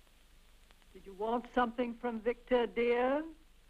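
A woman speaks with alarm close by.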